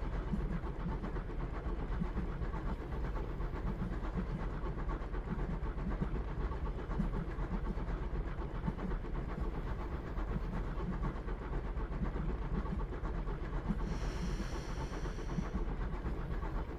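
A train rumbles along on rails.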